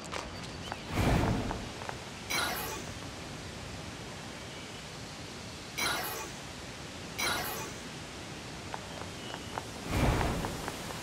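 A heavy blade swings and thuds to the ground.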